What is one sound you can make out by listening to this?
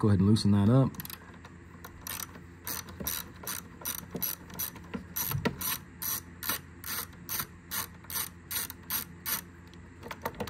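A ratchet wrench clicks rapidly and steadily.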